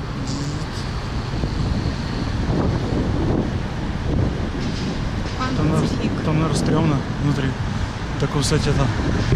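City traffic rumbles steadily outdoors.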